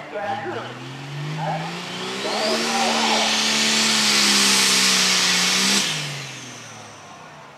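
A tractor engine revs up loudly, holds, then drops away.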